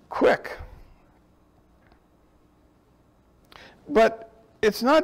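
A middle-aged man reads aloud slowly and calmly into a microphone.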